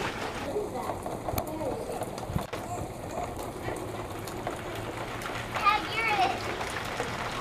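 Bare feet splash in shallow puddles.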